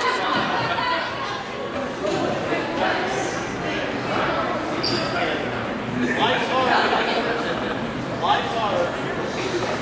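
A man talks to players.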